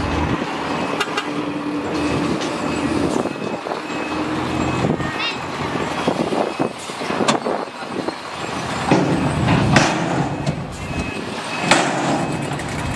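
A dump truck engine rumbles steadily.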